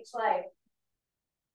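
A woman speaks briefly near a microphone.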